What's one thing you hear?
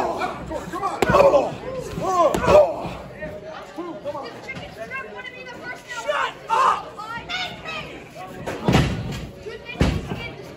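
A wrestler's body slams onto the ring mat with a loud thud.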